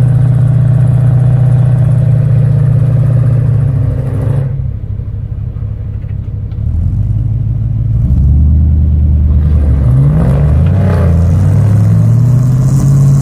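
An engine idles and revs loudly close by.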